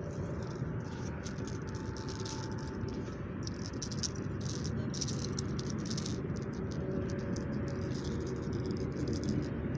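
Footsteps crunch on dry grass and leaves.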